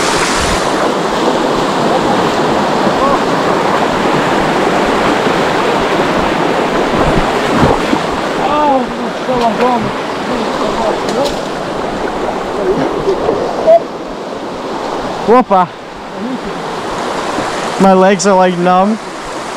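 A shallow stream rushes loudly over rocks.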